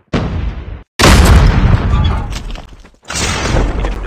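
An explosion booms loudly nearby.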